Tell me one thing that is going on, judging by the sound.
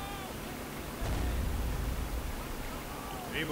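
A heavy explosion booms and rumbles nearby.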